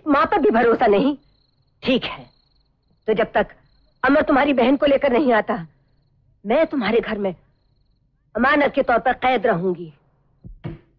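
An elderly woman speaks emotionally, pleading.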